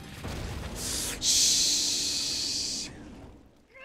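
Sparks burst with a loud crackling hiss.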